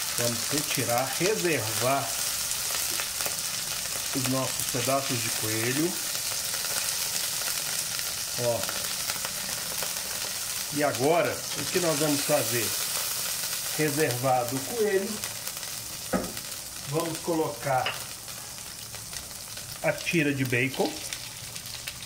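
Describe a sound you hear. Food sizzles steadily in hot oil.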